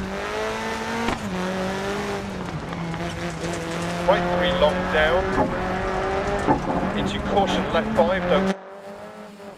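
A rally car engine roars loudly at high revs.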